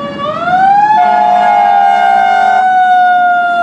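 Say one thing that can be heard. A fire engine's horn blares in a long blast.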